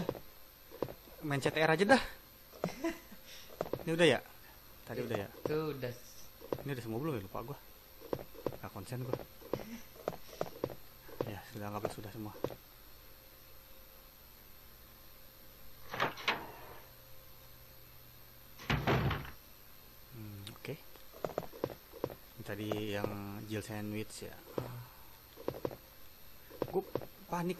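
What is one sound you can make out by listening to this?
Footsteps walk on a wooden floor.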